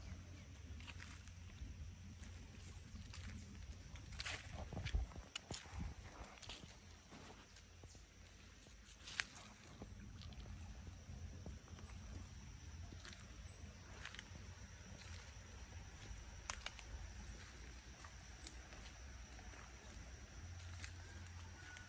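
Footsteps crunch on dry leaves.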